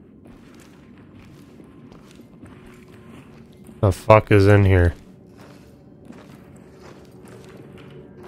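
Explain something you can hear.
Footsteps shuffle softly.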